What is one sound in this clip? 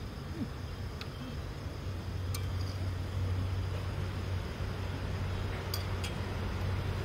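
A metal spoon clinks lightly against a dish.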